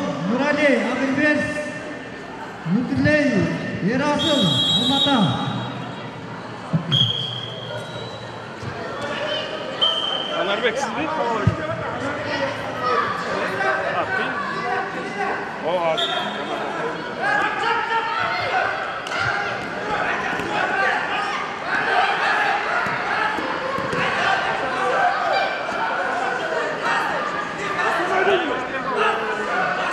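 A crowd of young spectators chatters and shouts in an echoing hall.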